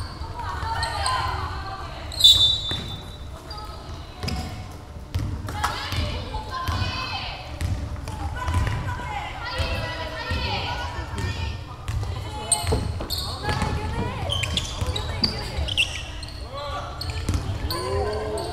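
Young women call out to each other on the court.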